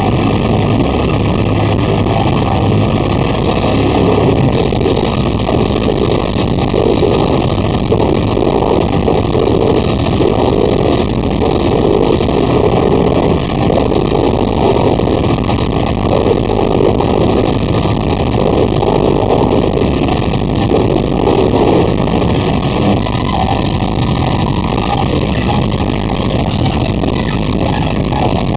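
Drums pound rapidly.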